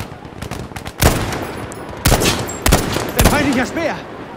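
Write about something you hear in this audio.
A rifle fires several loud single shots.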